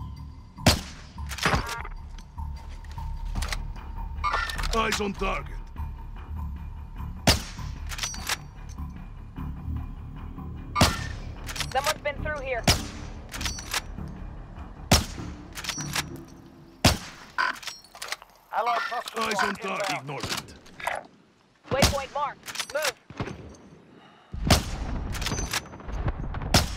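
A sniper rifle fires sharp, loud shots now and then.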